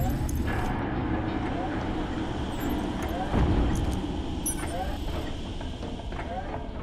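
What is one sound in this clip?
Heavy footsteps clank on metal grating.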